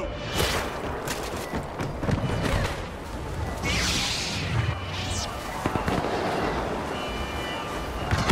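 Footsteps crunch over dry leaves and dirt.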